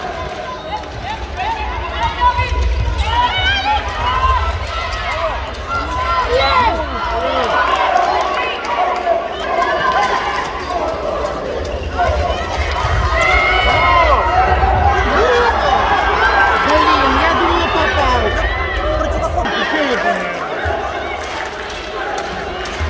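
Sneakers squeak sharply on a hard court, over and over.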